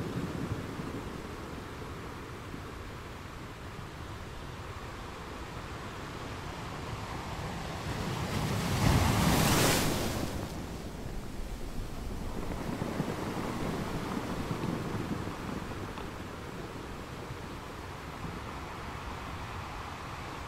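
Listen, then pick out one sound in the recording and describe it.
Ocean waves roll in and crash steadily against rocks.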